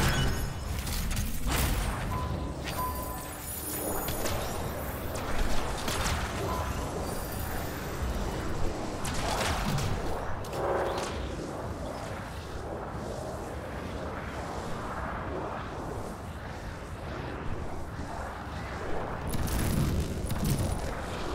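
Gunfire and explosions rumble and bang in a video game.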